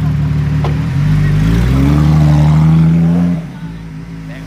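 A car engine revs up, rising in pitch, then cuts off.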